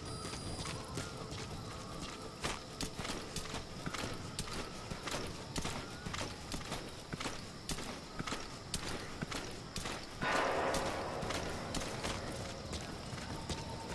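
Footsteps crunch and scuff on dry dirt.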